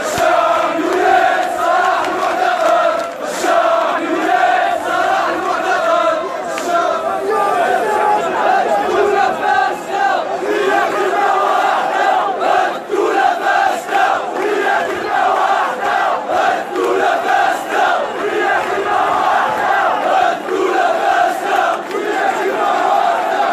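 A large crowd chants loudly in unison outdoors.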